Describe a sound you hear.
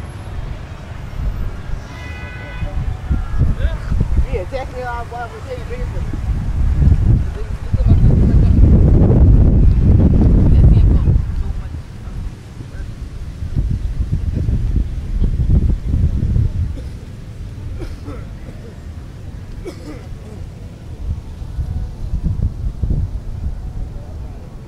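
Wind blows hard into the microphone outdoors.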